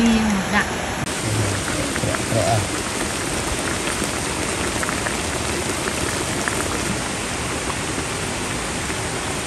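A broth bubbles and sizzles steadily in a pot.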